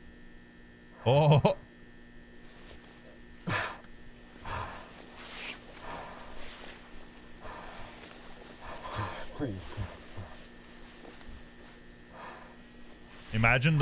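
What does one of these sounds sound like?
A man speaks quietly and briefly into a close microphone.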